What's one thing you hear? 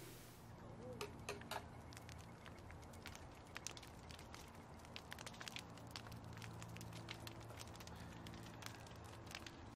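A campfire crackles and pops softly.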